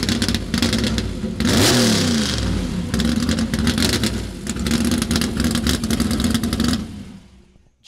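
A car engine idles with a deep, lumpy rumble.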